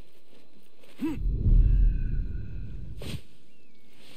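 A body lands heavily with a deep rustling thud.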